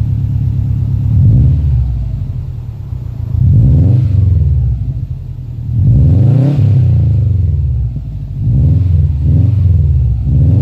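A car engine revs up and down repeatedly, its exhaust roaring close by.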